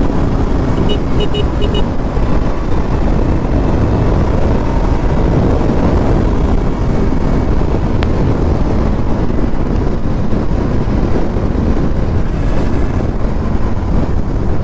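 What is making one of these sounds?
A motorcycle engine hums steadily while riding at speed.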